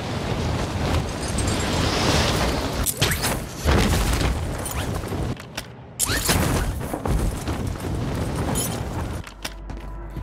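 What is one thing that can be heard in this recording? Wind rushes loudly past in fast flight.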